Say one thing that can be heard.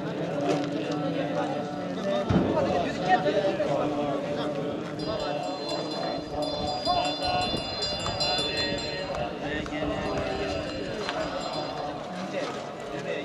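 A large group of men chant together in low voices, outdoors.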